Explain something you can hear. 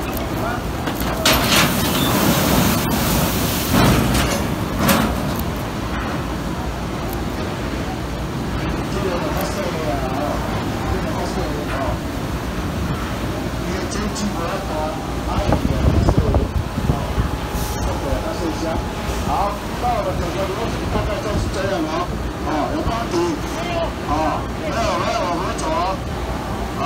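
Heavy machinery rumbles and clanks steadily.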